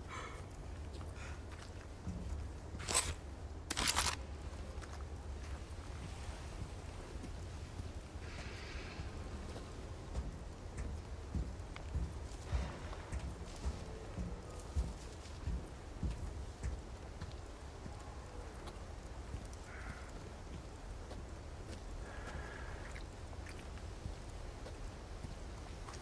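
Footsteps crunch on gravel and dirt in a slow crouching walk.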